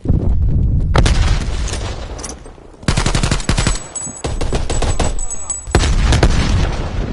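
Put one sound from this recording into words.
A rifle fires in bursts of sharp shots.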